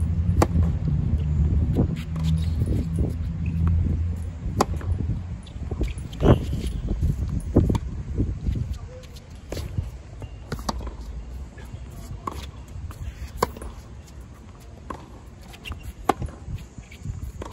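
Tennis balls are struck with sharp pops, back and forth in a rally.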